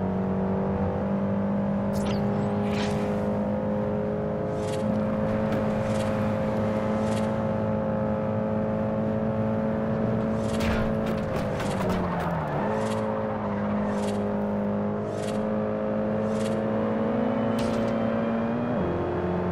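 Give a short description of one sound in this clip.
A car engine drones steadily at high revs, dipping briefly as the gears change.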